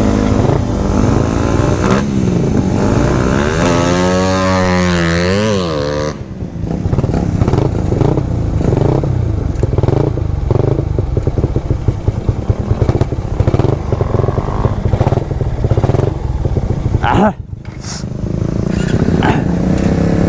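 Small motorcycles idle outdoors.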